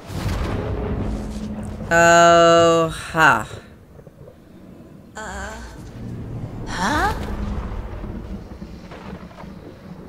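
Thunder rumbles low and deep.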